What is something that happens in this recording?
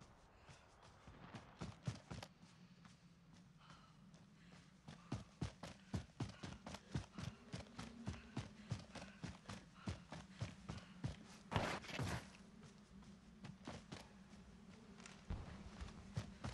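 Quick footsteps thud on grass as a person runs.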